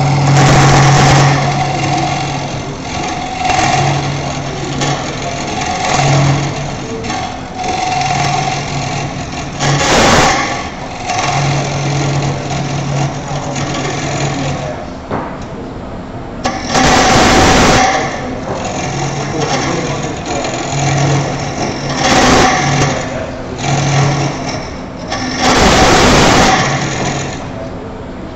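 A chisel scrapes and shaves against spinning wood in loud bursts.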